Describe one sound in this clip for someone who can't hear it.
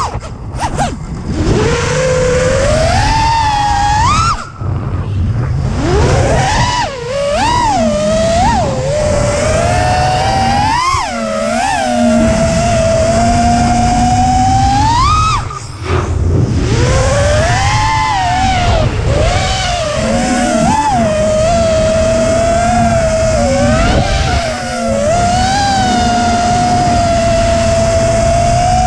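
A small racing drone's motors whine loudly, rising and falling in pitch as the drone speeds and swoops.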